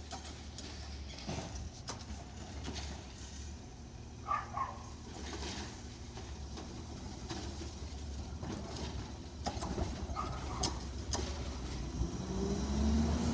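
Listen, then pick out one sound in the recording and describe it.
A garbage truck engine rumbles steadily nearby.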